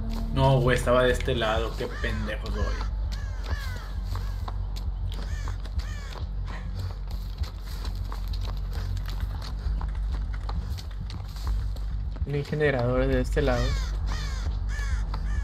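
Footsteps run over rough ground.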